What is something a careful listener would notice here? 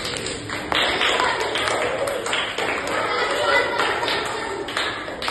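Marbles click against each other on a hard floor.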